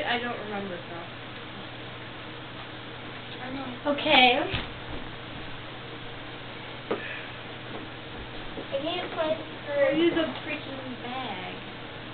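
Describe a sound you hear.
A young woman talks casually nearby.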